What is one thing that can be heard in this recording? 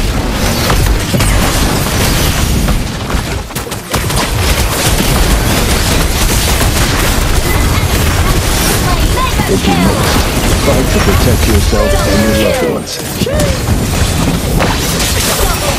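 Fighting sound effects from a video game crash and whoosh in rapid bursts.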